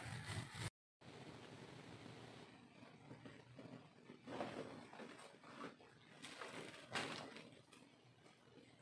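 A backpack's fabric rustles and scrapes as it is handled.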